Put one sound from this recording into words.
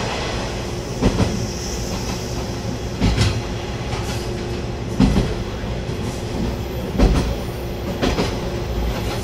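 Train wheels clack over rail joints at regular intervals.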